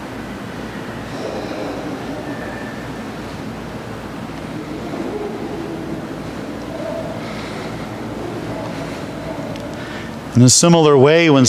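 A man speaks quietly in an echoing hall.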